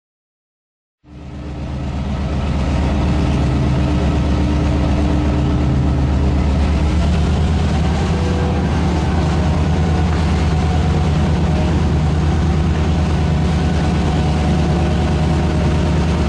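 A locomotive rumbles along the rails, heard from inside its cab.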